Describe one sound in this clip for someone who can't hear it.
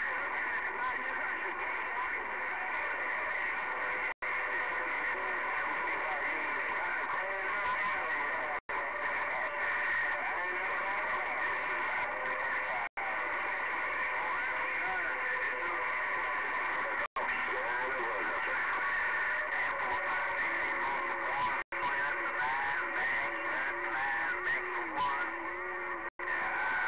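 A radio hisses with static and warbling, whistling tones.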